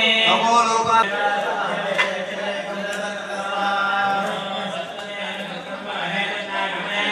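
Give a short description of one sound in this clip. A man chants into a microphone.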